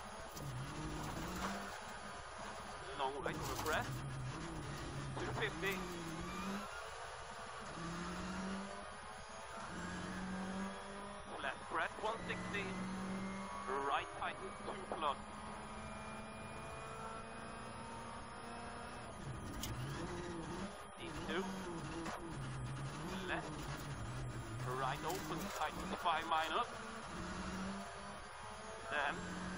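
A rally car engine roars and revs up and down at high speed.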